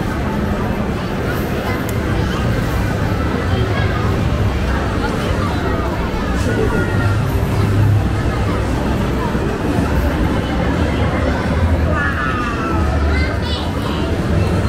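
Arcade machines play electronic jingles and tones.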